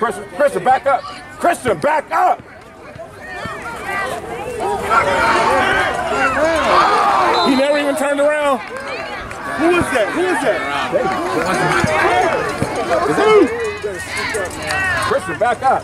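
Young players shout to each other across the field.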